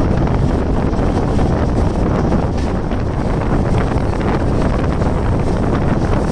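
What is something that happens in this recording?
Wind rushes loudly past the moving train.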